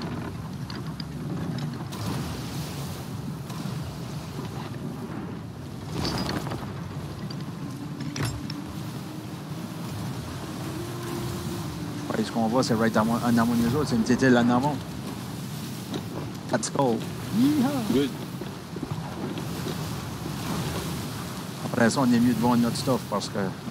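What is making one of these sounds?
Waves wash and splash against a wooden ship's hull.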